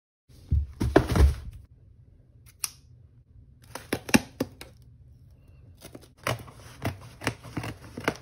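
Scissors snip through packing tape.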